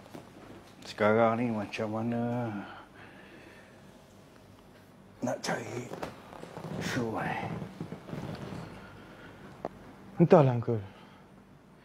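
A middle-aged man speaks in short bursts nearby.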